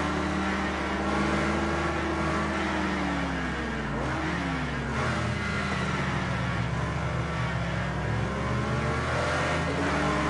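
A car engine roars, revving up and down as it races.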